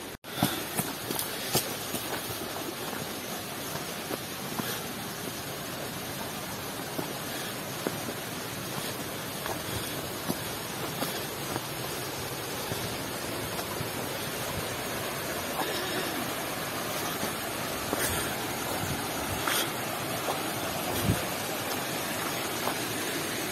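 A shallow stream rushes over rocks.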